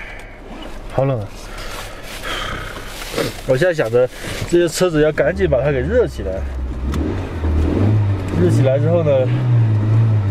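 A young man talks casually and laughs, close by.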